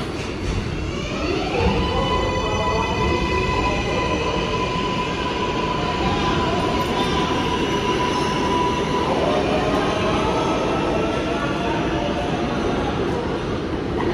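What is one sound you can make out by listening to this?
Steel wheels rumble and clatter on the rails as a subway train passes close by.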